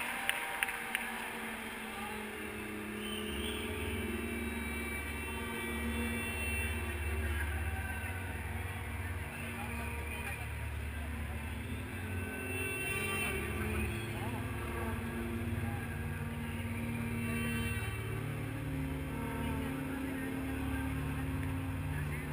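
A band plays music loudly over a stadium sound system.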